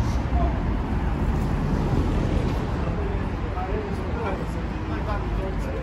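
Footsteps scuff on pavement nearby.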